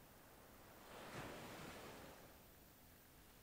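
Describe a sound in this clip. Waves wash softly onto a shore.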